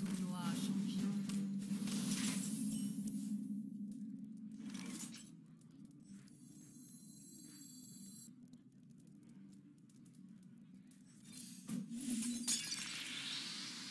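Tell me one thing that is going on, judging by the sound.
Digital card game sound effects chime and whoosh as cards are played.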